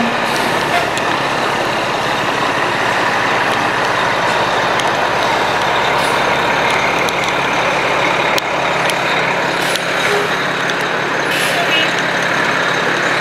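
Water sprays and roars from a fire hose.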